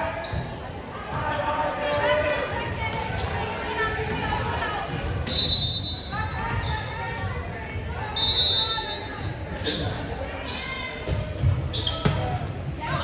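Young women call out to each other in a large echoing gym.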